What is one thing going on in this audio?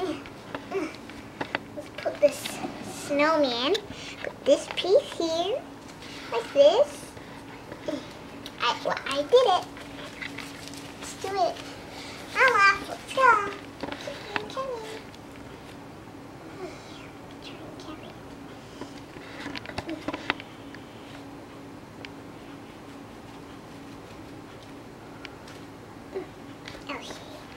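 Small plastic toys knock and rustle as they are handled.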